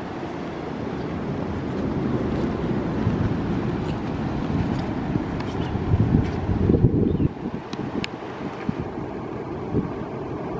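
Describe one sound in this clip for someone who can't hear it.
Strong wind gusts and rumbles outdoors, easing off after a while.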